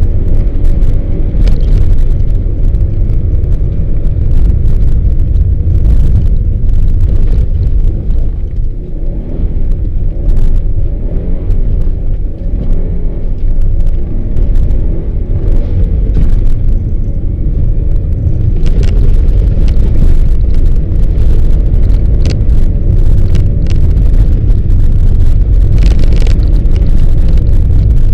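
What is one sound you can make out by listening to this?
A car engine hums steadily, heard from inside the cabin.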